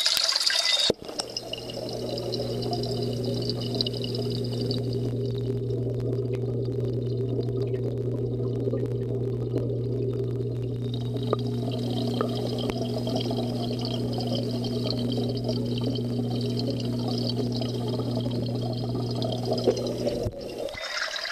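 An aquarium pump hums steadily.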